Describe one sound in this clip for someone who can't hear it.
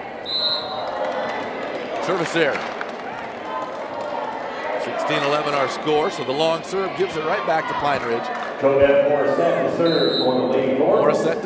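A referee's whistle blows shrilly in a large echoing gym.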